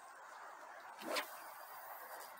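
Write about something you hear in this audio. A fishing rod swishes through the air in a quick cast.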